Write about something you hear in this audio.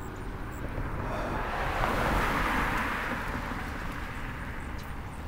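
A car drives past on the road, rising and fading.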